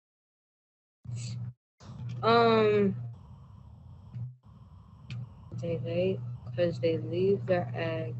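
A teenage boy speaks through an online call.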